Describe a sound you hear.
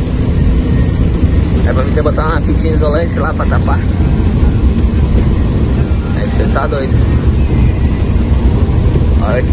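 A car engine hums steadily with a low road rumble while driving.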